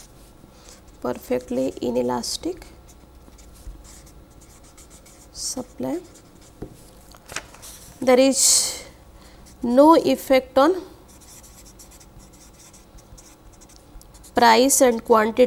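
A marker squeaks softly across paper.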